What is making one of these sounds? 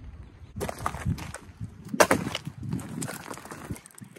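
A bundle of firewood thumps down onto gravel.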